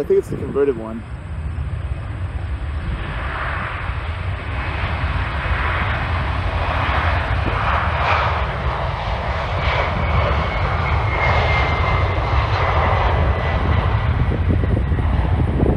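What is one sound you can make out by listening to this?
A jet airliner's engines roar and whine as it rolls down a runway.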